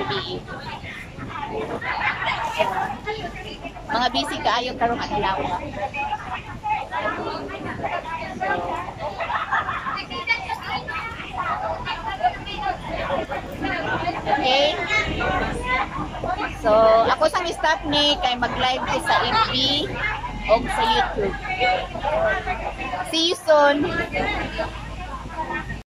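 A group of women chatter and laugh in the background.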